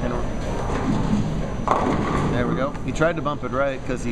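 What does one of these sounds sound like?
A bowling ball rolls and rumbles down a wooden lane.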